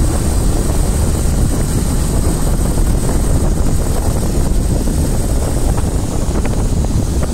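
Wind rumbles against the microphone of a moving vehicle.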